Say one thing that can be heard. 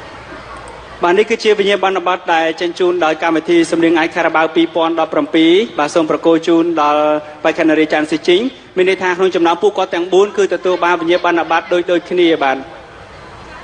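A man announces loudly and with animation through a microphone.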